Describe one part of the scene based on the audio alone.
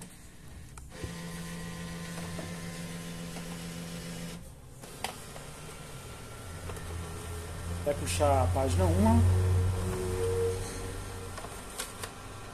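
A scanner motor whirs steadily.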